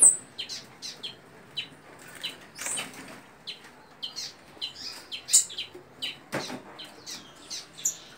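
Birds chirp and tweet rapidly nearby.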